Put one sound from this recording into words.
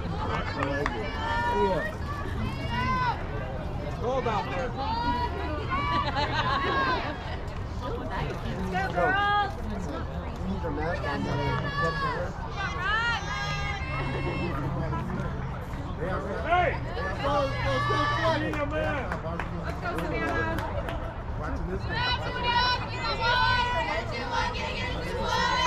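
Young women chant and cheer loudly across an open field.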